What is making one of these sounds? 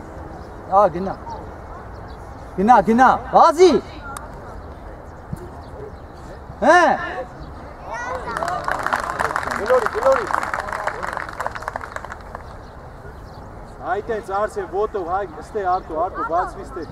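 Children shout out loudly across an open outdoor field.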